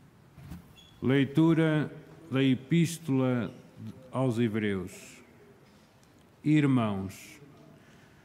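A man reads out through a microphone in a large echoing hall.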